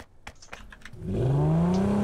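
A car engine starts and revs up.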